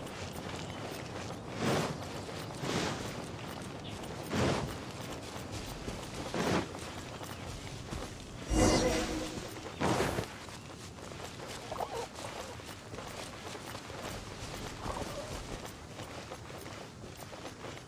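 Footsteps patter quickly on grass and stone.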